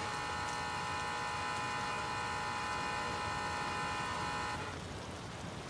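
A doorbell chimes.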